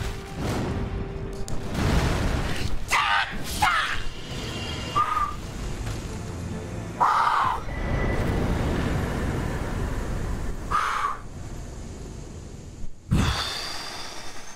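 A sword clashes and strikes in a loud game fight.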